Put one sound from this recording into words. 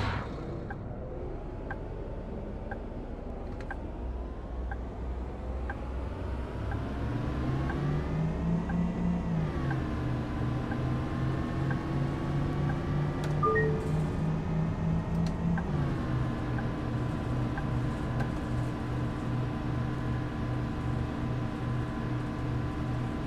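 A bus engine hums and rises in pitch as it speeds up, then drops as it shifts gears.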